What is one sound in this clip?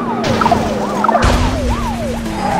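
A car crashes into another car with a thud.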